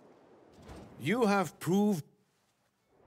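An elderly man speaks a short phrase calmly.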